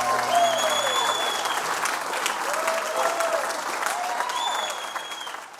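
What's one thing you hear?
An acoustic guitar is strummed.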